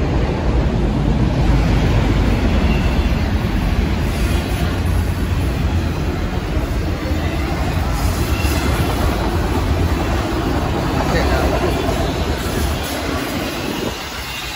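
Footsteps walk steadily on concrete outdoors.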